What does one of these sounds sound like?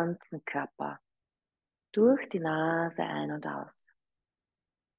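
A young woman speaks calmly and softly through a microphone.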